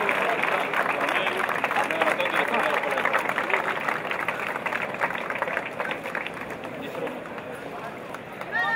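A crowd applauds outdoors, the clapping slowly fading.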